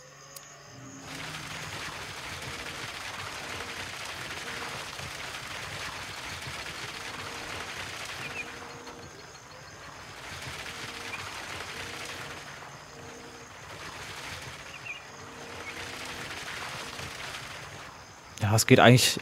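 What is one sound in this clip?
Wet concrete pours out and splatters.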